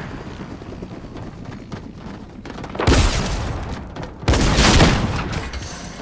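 Footsteps thud quickly as a game character runs.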